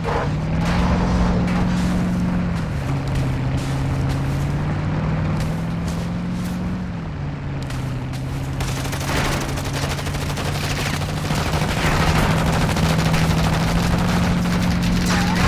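Tyres rumble and crunch over rough dirt.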